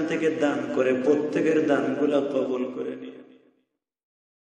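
A man chants a prayer in a slow, melodic voice, fading away to silence.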